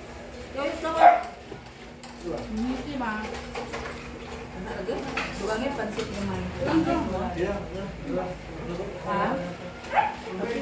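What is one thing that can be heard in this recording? Several men and women talk and chat nearby in a room.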